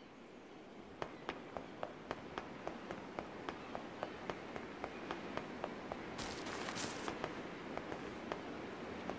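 Footsteps tap quickly and evenly on hard ground.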